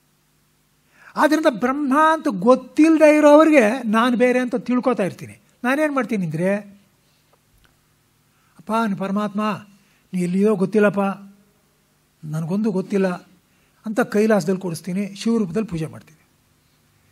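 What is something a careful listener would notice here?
An elderly man speaks slowly and calmly.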